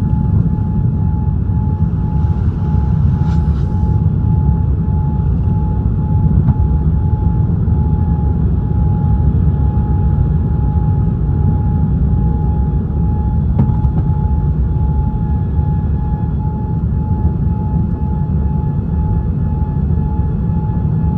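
Jet engines roar steadily with a deep rumble inside an airplane cabin.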